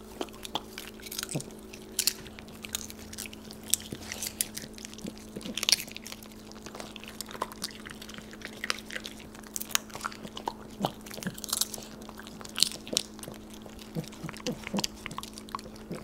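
Dogs crunch and chew popcorn.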